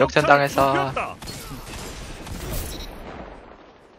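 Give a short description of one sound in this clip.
A gun fires loud single shots.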